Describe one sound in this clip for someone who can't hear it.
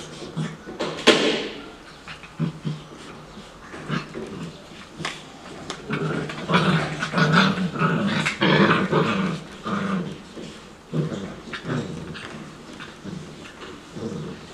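Puppies yelp and whine.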